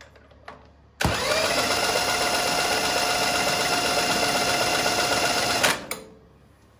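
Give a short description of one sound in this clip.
A cordless drill whirs loudly and steadily as it spins a small engine over.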